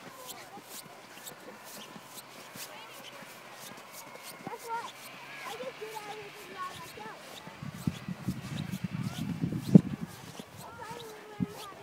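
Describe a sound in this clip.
Boots crunch through snow.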